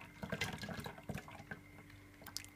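Liquid pours into a pot with a soft splash.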